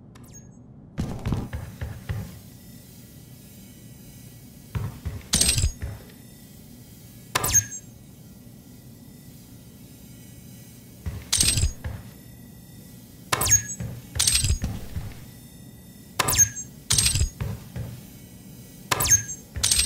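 A gun fires in short, sharp bursts.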